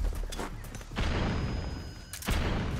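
A body thuds onto the ground.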